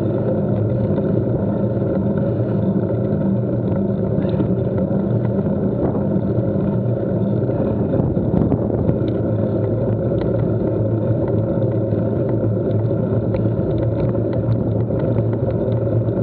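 Bicycle tyres roll over a tarmac lane.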